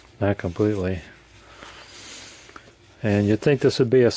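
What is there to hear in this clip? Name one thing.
Paper pages of a book rustle as they are handled and turned.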